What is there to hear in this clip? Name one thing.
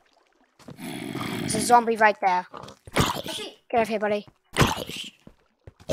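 A zombie groans close by.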